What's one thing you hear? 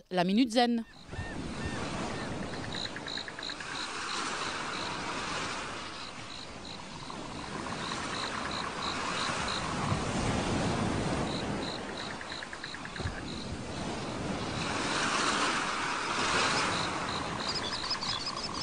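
Waves wash onto a beach in slow swells.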